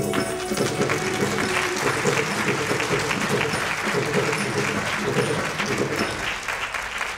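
A woman sings into a microphone, heard through loudspeakers.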